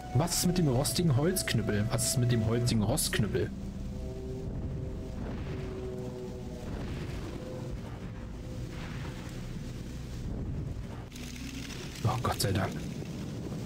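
Fire spells burst with a whoosh.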